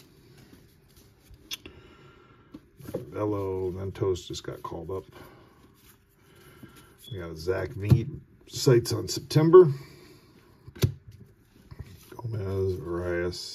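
Trading cards rustle and slide against each other as they are flipped through.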